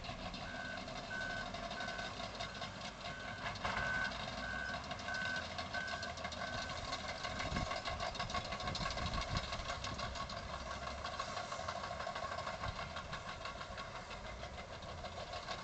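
Heavy machinery engines rumble steadily in the distance.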